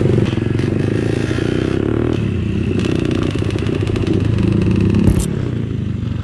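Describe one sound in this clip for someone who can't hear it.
A dirt bike engine roars up close as it rides along.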